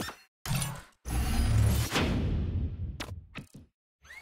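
An upgrade effect whooshes with a deep boom.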